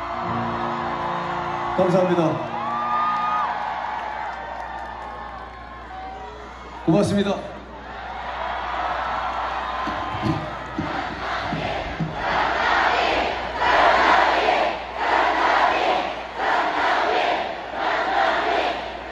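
A large crowd cheers and screams outdoors.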